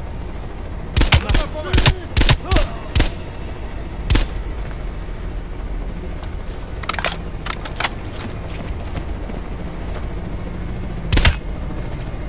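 A rifle fires a series of loud, sharp shots.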